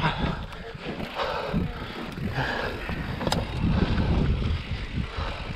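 Bicycle tyres crunch and rattle over rocky ground.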